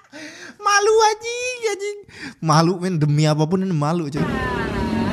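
A young man talks excitedly close to a microphone.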